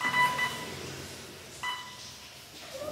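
An electronic device beeps several times.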